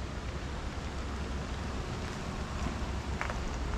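Tyres crunch softly on a gravel road.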